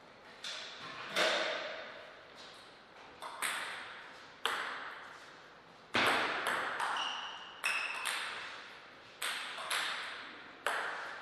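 A table tennis ball clicks sharply off paddles and the table in a reverberant hall.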